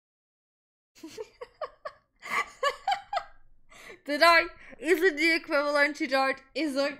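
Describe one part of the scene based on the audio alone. A young woman laughs and talks with animation close to a microphone.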